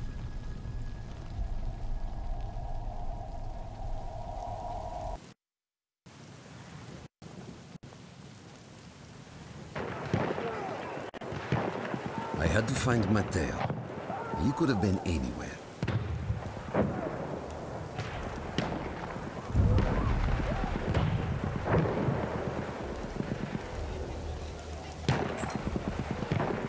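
Rain falls heavily.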